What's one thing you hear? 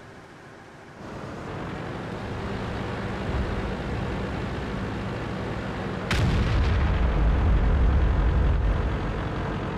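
A tank engine rumbles low and steady as the tank drives.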